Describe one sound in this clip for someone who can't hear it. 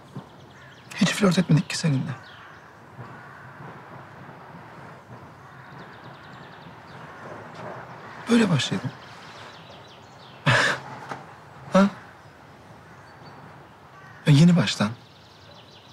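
A man speaks close by in a strained, emotional voice.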